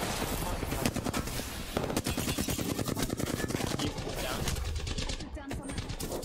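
Rapid gunfire crackles in bursts.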